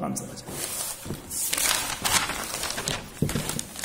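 Notebook pages rustle as they are turned.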